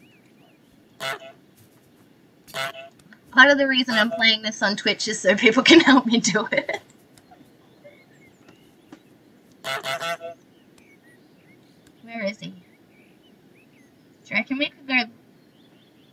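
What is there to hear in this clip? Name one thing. A goose honks loudly in short bursts.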